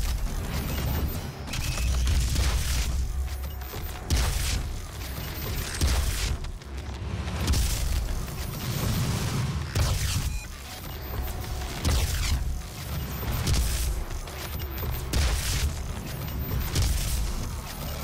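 Explosions boom and roar.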